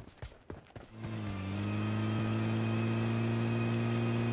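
A vehicle engine drones steadily.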